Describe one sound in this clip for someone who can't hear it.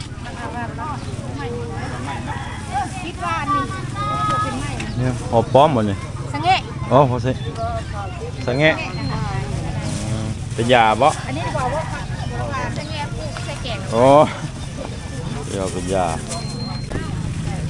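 Women talk nearby with animation.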